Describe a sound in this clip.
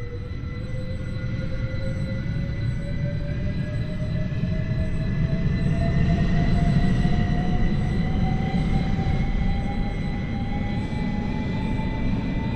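A train's electric motor whines, rising steadily in pitch as it speeds up.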